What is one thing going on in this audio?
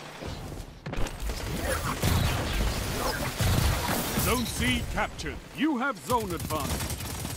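Gunfire crackles in rapid bursts.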